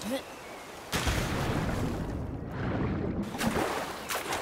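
Water bubbles and rushes in a muffled way underwater.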